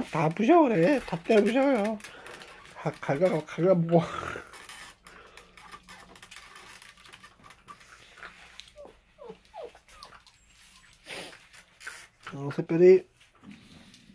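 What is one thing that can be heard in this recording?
Small dogs whine and yelp in high, wavering cries.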